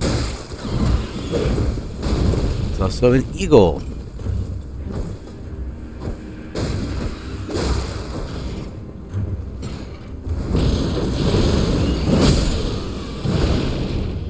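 Heavy blades clash and thud in a fight.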